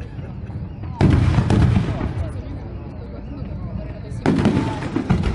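Fireworks burst and crackle loudly.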